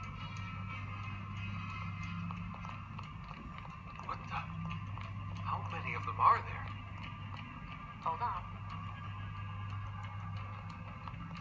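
Footsteps tap steadily from a small game speaker.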